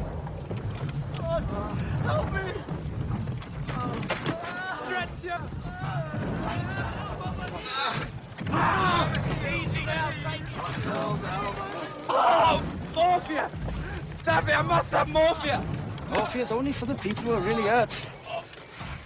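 Men shout loudly outdoors.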